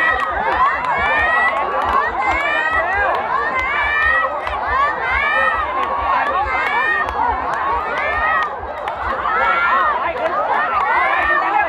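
A crowd of rowers shouts and cheers in the distance.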